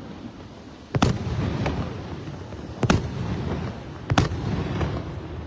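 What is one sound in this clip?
Fireworks crackle and fizzle after each burst.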